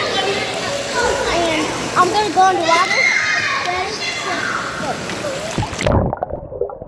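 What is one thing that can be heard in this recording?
A young girl talks excitedly close up, her voice echoing in a large indoor pool hall.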